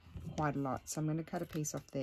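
Small scissors snip through fabric.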